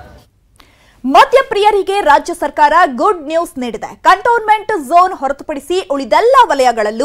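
A young woman speaks with animation into a microphone, close by.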